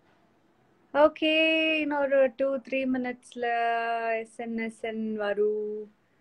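A young woman sings close by in sustained notes.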